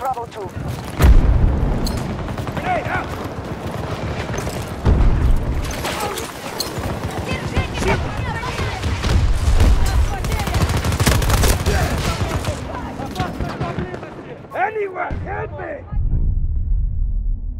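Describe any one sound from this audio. An explosion booms loudly.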